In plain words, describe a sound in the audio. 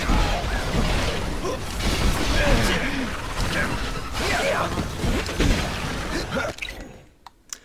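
Swords clash and strike in a fast fight.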